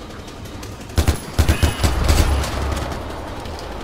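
A rifle fires a quick burst of loud shots.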